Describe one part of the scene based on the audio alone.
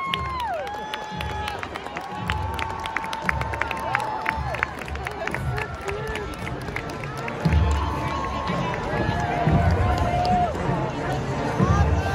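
A large outdoor crowd cheers and whistles.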